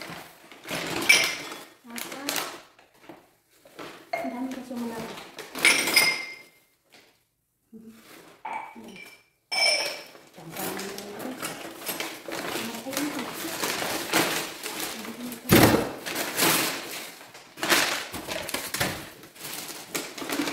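Paper and cardboard rustle and crinkle as they are pushed into a plastic bag.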